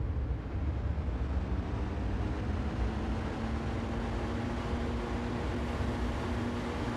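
An electric motor hums, rising in pitch as the train speeds up.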